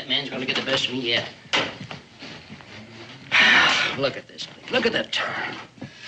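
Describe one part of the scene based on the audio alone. An elderly man speaks gruffly nearby.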